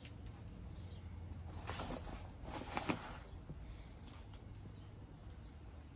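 Hands press and scrape dry soil in a pot.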